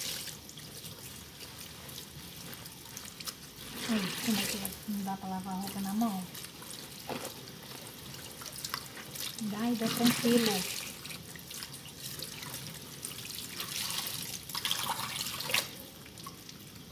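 Water runs from a tap and splashes into a basin.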